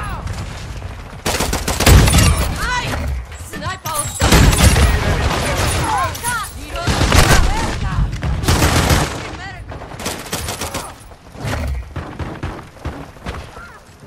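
A shotgun is pumped with a sharp metallic clack.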